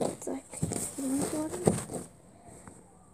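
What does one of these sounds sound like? A young girl speaks close up with animation.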